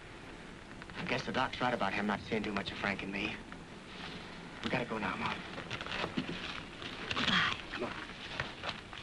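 A man answers in a low voice.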